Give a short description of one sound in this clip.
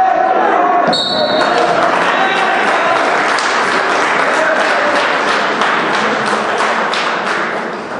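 A crowd cheers and shouts in a large echoing hall.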